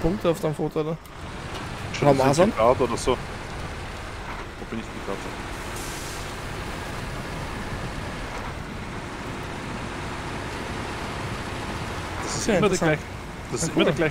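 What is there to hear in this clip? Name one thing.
A heavy truck engine rumbles steadily as the truck drives along.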